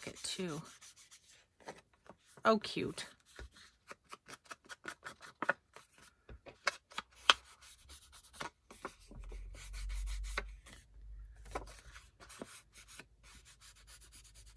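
A foam blending tool dabs rapidly against paper.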